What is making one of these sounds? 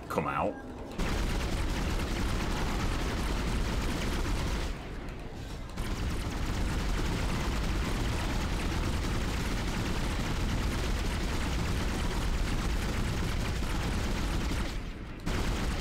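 A futuristic weapon fires in rapid, rumbling bursts.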